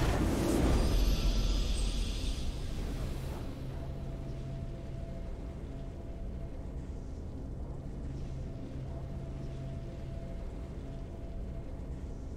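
A triumphant victory fanfare plays softly and steadily.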